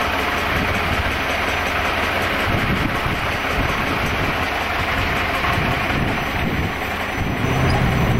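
A jet engine roars steadily nearby.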